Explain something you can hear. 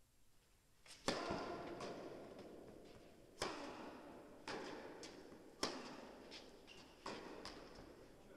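A tennis ball is struck hard with a racket, echoing in a large hall.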